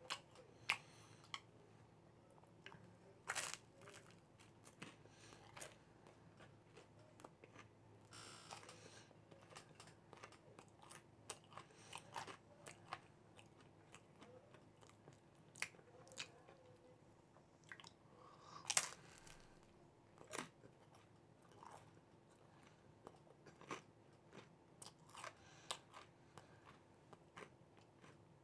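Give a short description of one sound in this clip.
A man chews food with soft, wet mouth sounds close by.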